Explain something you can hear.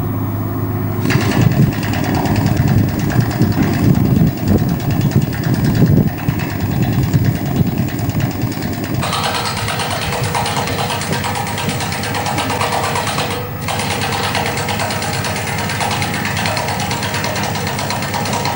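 Metal clanks as a worker fastens a rail.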